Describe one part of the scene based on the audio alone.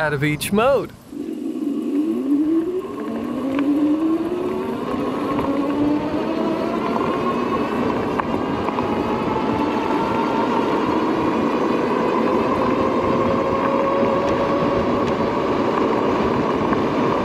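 Tyres hum on a paved path.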